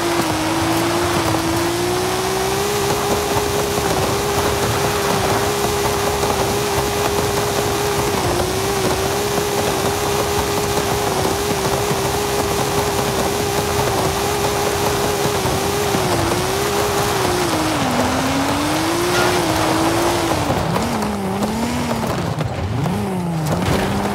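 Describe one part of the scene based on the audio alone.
Tyres crunch and rumble over rough dirt and grass.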